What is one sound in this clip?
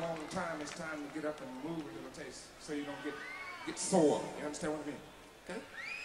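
A crowd cheers and sings along.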